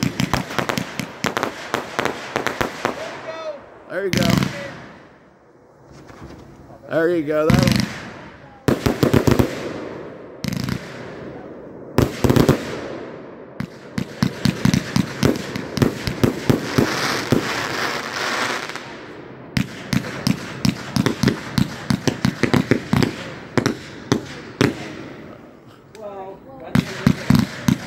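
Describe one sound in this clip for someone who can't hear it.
Fireworks crackle and pop in rapid bursts close by.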